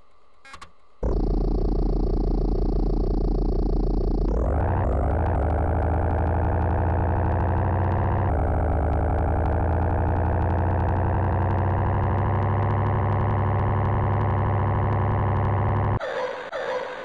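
A synthesized video game car engine drones and rises in pitch as it speeds up.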